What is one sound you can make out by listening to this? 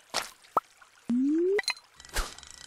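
A bright rising chime sounds as a fish is caught.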